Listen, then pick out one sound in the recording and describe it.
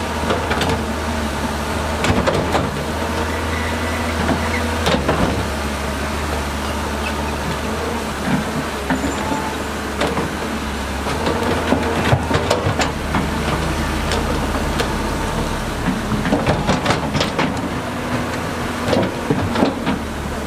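An excavator bucket scrapes and knocks against mud and stones.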